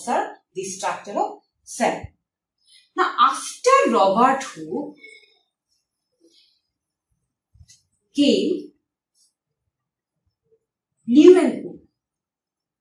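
A young woman speaks calmly nearby, explaining.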